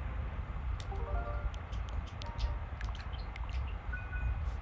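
Short electronic menu beeps sound in quick succession.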